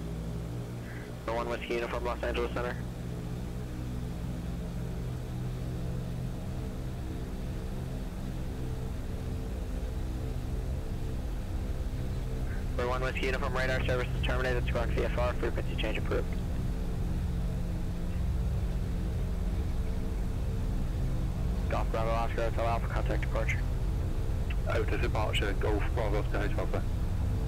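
Aircraft engines drone steadily and slowly grow louder.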